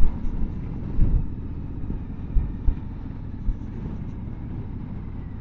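Wind rumbles and buffets loudly past a microphone while riding.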